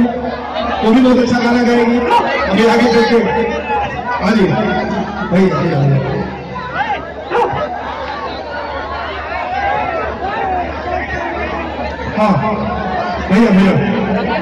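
Loud music with a heavy beat plays through loudspeakers.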